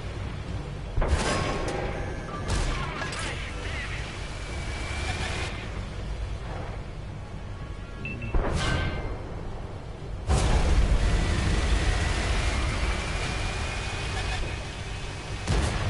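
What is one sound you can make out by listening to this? Tank cannons fire with loud booming blasts.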